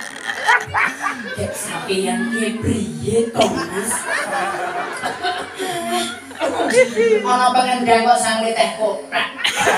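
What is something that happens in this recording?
Women laugh nearby.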